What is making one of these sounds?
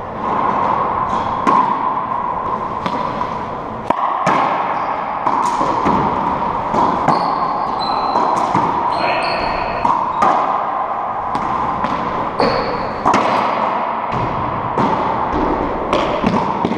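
Rackets strike a ball with sharp cracks.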